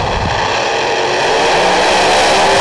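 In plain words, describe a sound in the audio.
Race car engines roar as the cars launch away.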